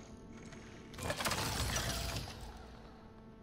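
A heavy metal machine clanks loudly as it is picked up.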